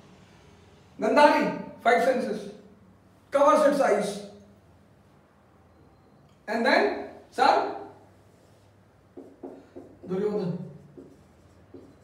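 A middle-aged man speaks with animation, close by, in short bursts.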